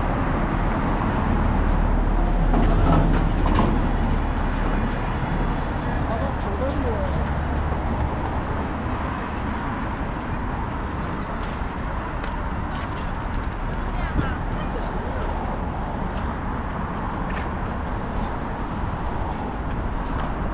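City traffic hums steadily along a busy street outdoors.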